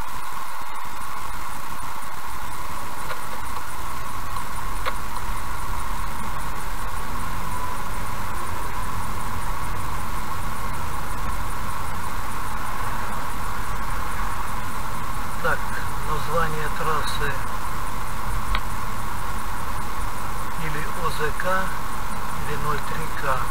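A car engine hums and tyres rumble on the road.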